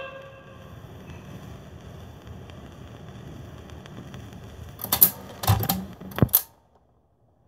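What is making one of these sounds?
Music plays from a vinyl record with faint surface crackle.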